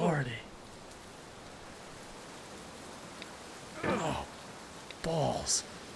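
A young man exclaims loudly into a close microphone, in short bursts.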